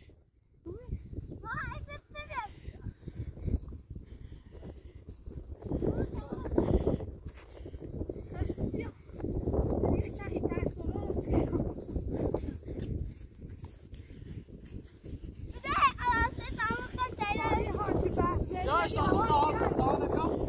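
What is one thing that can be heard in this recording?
Footsteps crunch through snow outdoors.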